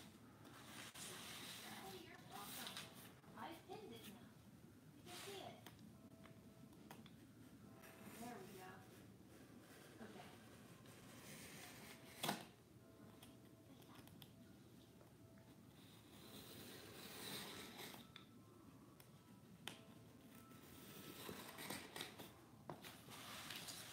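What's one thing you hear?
A marker scratches and squeaks on cardboard.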